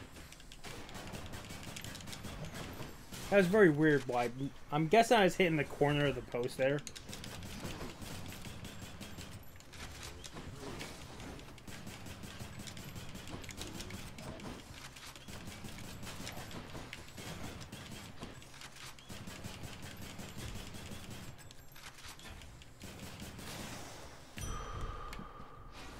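Game weapons clash and blasts go off in quick bursts.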